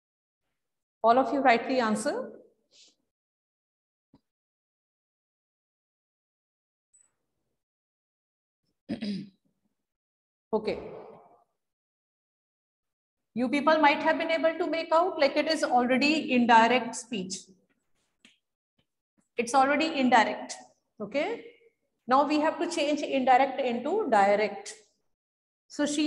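A middle-aged woman speaks calmly and clearly, as if teaching, close by.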